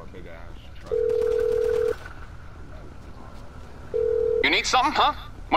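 A phone rings with a steady electronic tone.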